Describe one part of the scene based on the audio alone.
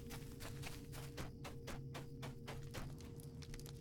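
Footsteps tap at a steady pace.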